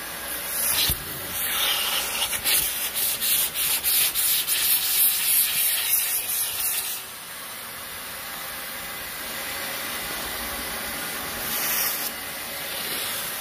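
A vacuum cleaner hums steadily and sucks at fabric.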